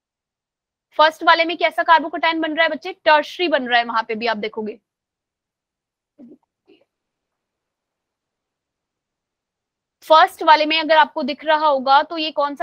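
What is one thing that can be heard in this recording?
A young woman speaks calmly through a microphone on an online call.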